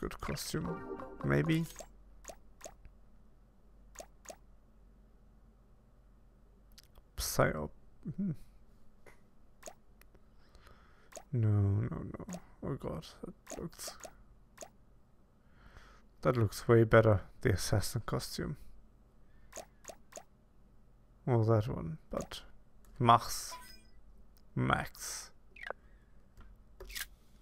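Short game menu clicks sound as options are selected.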